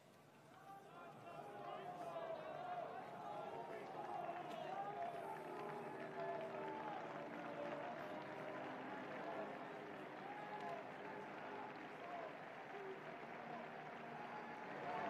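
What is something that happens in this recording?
A large crowd sings together outdoors, echoing across a wide open space.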